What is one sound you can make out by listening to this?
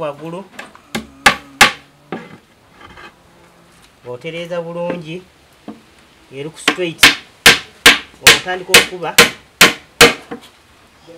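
A hammer strikes nails into wood in sharp, repeated blows.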